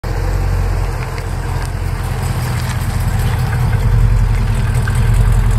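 A car engine idles with a deep, throaty rumble close by.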